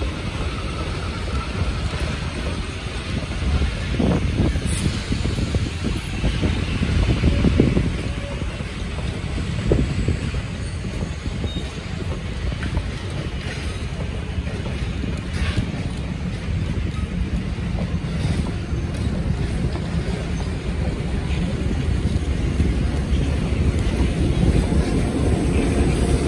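Passenger train cars rumble steadily past close by.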